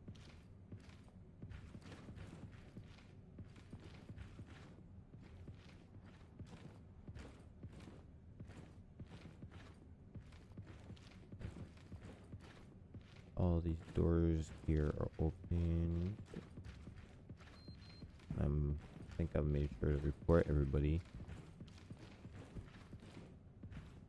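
Footsteps fall at a steady walking pace on a hard floor.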